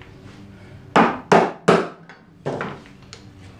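A wooden mallet knocks on wood several times.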